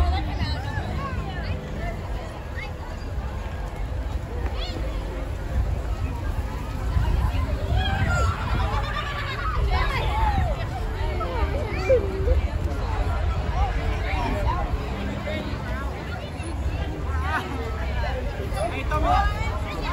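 A crowd of onlookers chatters and cheers outdoors.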